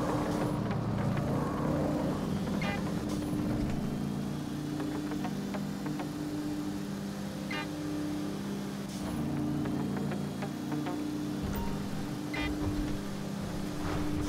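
A car engine hums low and steady as the car drives along.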